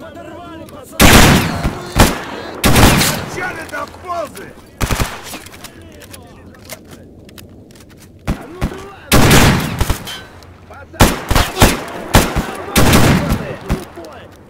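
Loud rifle shots ring out one at a time, each with a long echoing tail.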